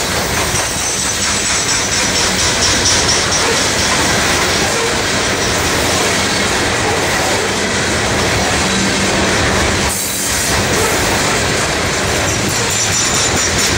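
Steel wheels squeal faintly on the rails.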